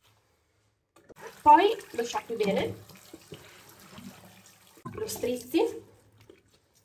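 Water runs from a tap and splashes into a sink.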